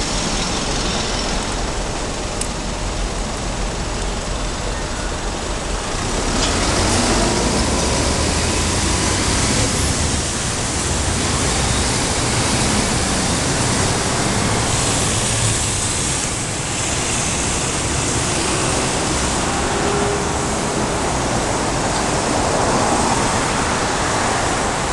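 City traffic hums and rushes steadily below, outdoors.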